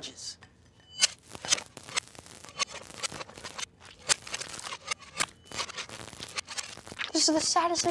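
Hands pat and stack sandwiches with soft taps and rustles.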